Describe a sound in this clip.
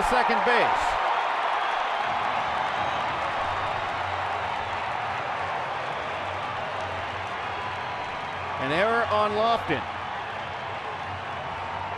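A large crowd cheers and murmurs in an open stadium.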